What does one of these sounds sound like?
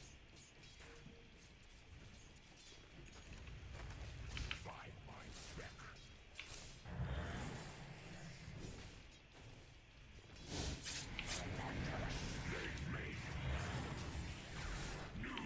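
Magic spells whoosh and burst in a fight.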